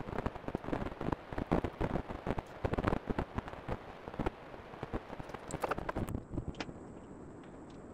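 Hands knock and click against the plastic shell of an electric unicycle.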